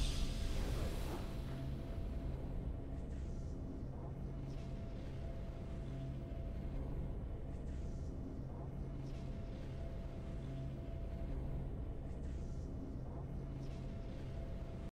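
Triumphant victory music plays with a steady beat.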